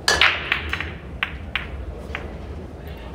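Pool balls knock against each other and the cushions.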